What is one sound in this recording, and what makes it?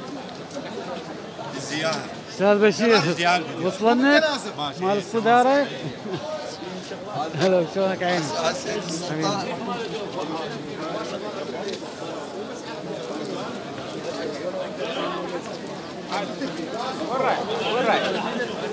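A crowd of men chatters in the background.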